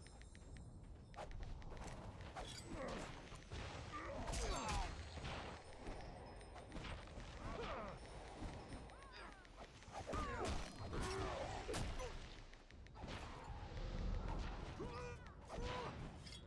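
Magic blasts crackle and burst during a fight.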